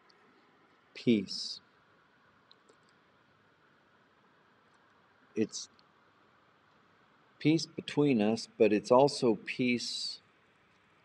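An older man speaks calmly and briefly, close to a microphone, with long pauses.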